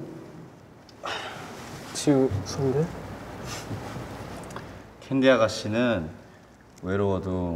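A young man speaks softly and gently.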